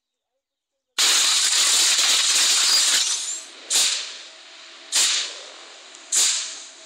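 An electric energy beam crackles and hums loudly, with sharp surges.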